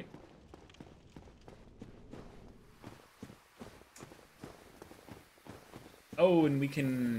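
Footsteps tread steadily on soft ground.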